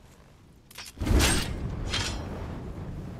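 A sword swings with a fiery whoosh.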